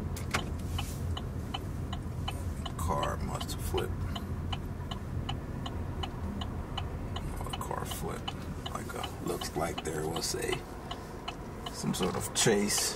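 A car engine idles with a low steady hum.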